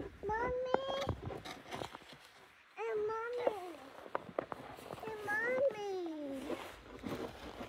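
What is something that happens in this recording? A young child speaks in a high voice close by.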